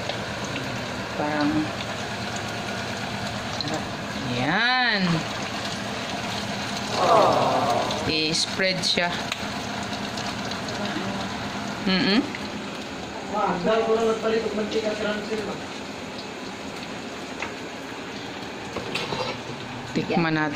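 Food sizzles and crackles in hot oil in a frying pan.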